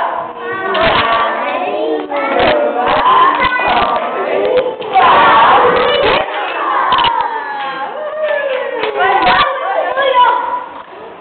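A woman sings with animation nearby.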